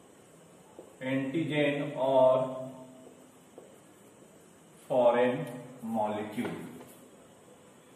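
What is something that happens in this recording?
A man speaks calmly, as if explaining.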